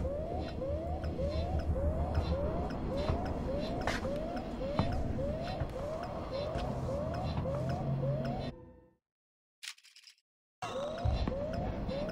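A handheld motion tracker pings with short rising chirps.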